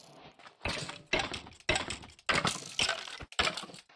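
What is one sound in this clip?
A sword strikes a skeleton with sharp hits.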